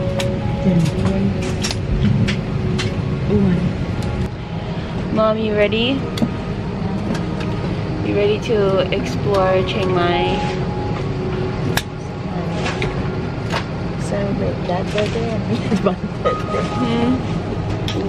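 A young woman talks close by, in a low voice.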